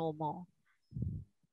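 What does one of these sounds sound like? An elderly woman speaks briefly over an online call.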